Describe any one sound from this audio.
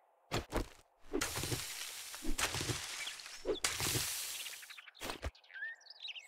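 A stone axe swishes and chops through grass.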